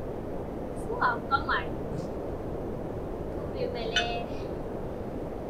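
A woman speaks briefly and with animation, close by.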